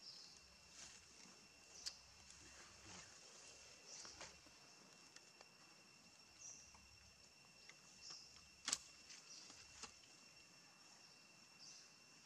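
A small monkey chews and nibbles on fruit up close.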